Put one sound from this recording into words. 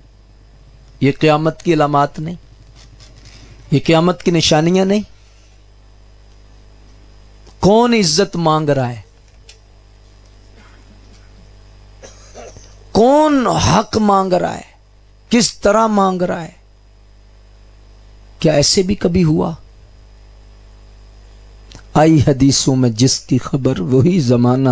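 A man preaches with fervour in bursts through a loudspeaker, with pauses between phrases.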